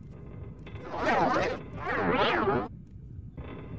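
A magic spell swells with a shimmering whoosh.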